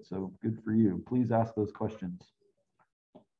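A man speaks calmly through a microphone on an online call.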